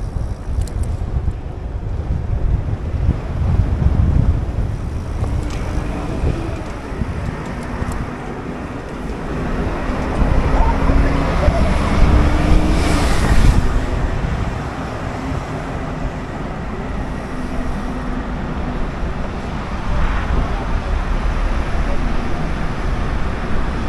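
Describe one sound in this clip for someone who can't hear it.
Cars and a van drive past on a nearby street.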